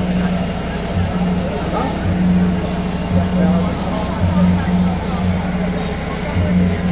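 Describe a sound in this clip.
A crowd of people chatter close by outdoors.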